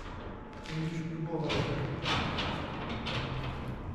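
A metal door creaks as it swings open.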